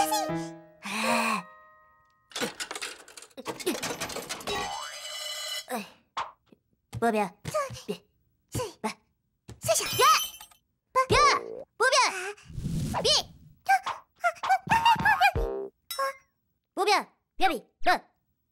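A squeaky cartoon voice speaks with animation.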